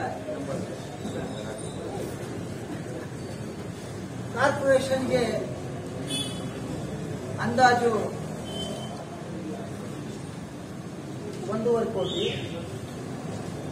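A middle-aged man speaks steadily into a microphone, reading out a statement.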